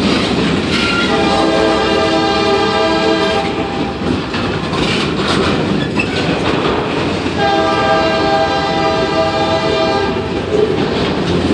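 Train wheels squeal sharply against the rails.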